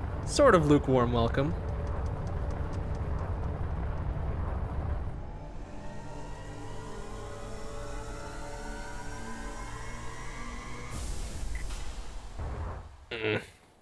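A spaceship engine hums and roars steadily.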